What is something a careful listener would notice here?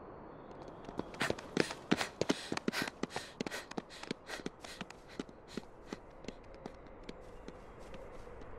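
Quick footsteps patter along a dirt path and fade into the distance.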